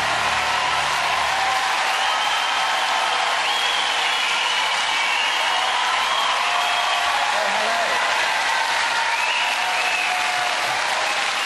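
A large crowd claps and applauds loudly in a big hall.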